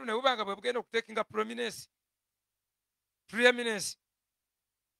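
A man preaches with animation into a microphone, in short bursts with pauses.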